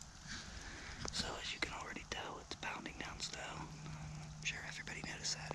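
A man whispers quietly close by.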